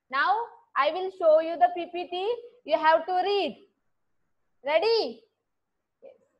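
A young woman speaks calmly and cheerfully, close to a microphone.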